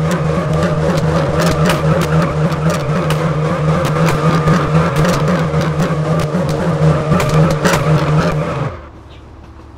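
A car engine roars loudly at high revs.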